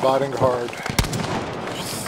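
Gunshots crack sharply outdoors.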